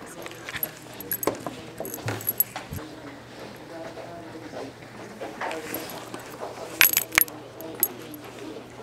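Chairs and desks knock and scrape.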